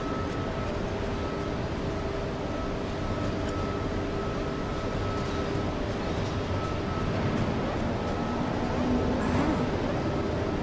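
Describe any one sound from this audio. Water churns and splashes nearby.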